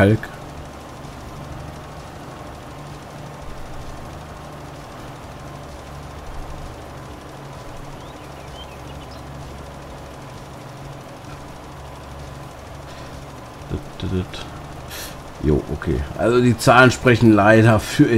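A tractor engine hums steadily as it drives.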